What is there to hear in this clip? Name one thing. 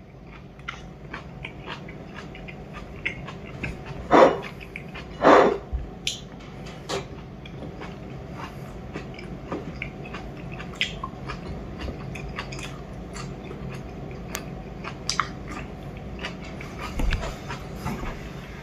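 A man eats noisily, chewing and smacking his lips close by.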